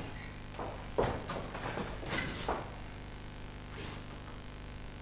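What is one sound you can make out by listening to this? A man speaks with animation, heard from a distance in a large hall.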